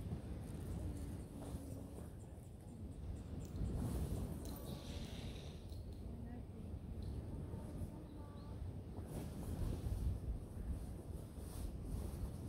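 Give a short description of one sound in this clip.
A tent's canvas ripples and flaps in the wind.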